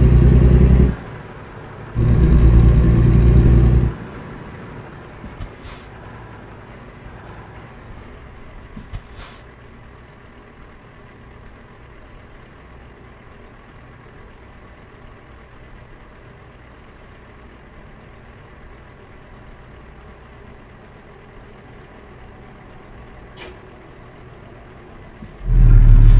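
A truck engine rumbles low and steady.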